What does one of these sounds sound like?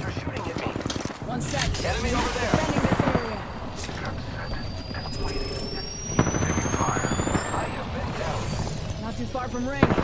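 A charging device hums and crackles with electricity in a video game.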